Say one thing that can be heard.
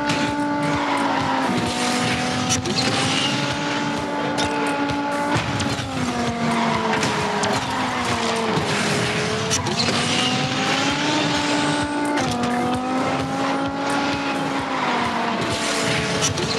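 A muscle car engine roars at high revs.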